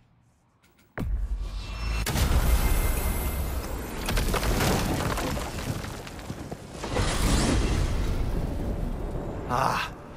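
A magical whoosh swells and roars.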